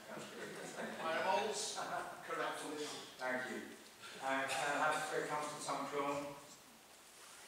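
An elderly man speaks calmly into a microphone in an echoing hall.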